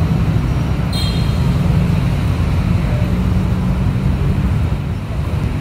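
A motorbike engine idles close by with a low rumble.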